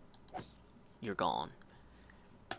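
A sword strikes a small creature.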